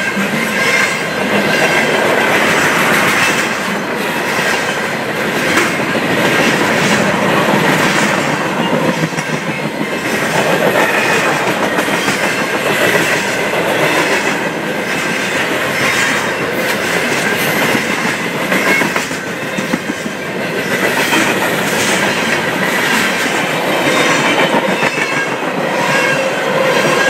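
A long freight train rumbles past close by, its wheels clattering and squealing on the rails.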